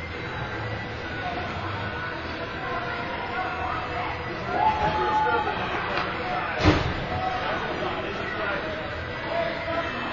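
Voices of players and spectators echo around a large indoor rink.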